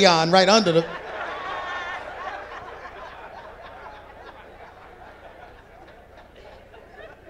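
An audience laughs and murmurs.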